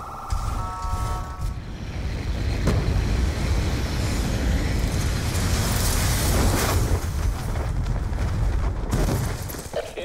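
Aircraft engines roar loudly overhead.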